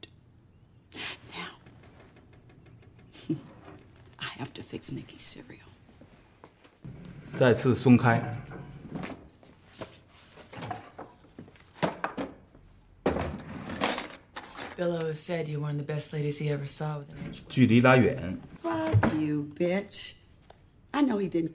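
A second young woman answers in a low, calm voice.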